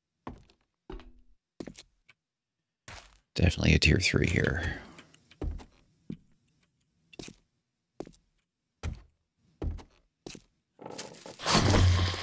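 Footsteps thud on a wooden floor at a walking pace.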